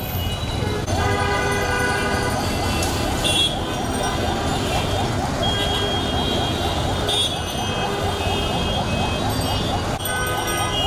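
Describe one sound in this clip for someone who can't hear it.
Vehicle horns honk in traffic.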